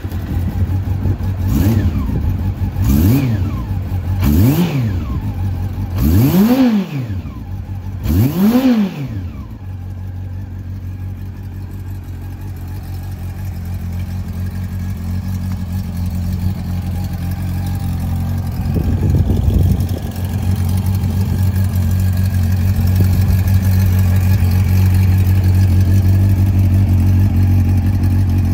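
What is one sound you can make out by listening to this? A motorcycle engine idles with a deep, steady rumble.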